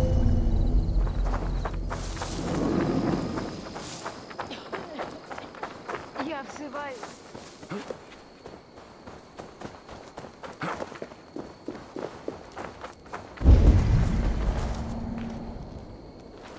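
Footsteps crunch over grass and dry ground.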